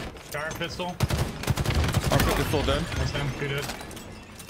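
An explosion booms loudly in a game.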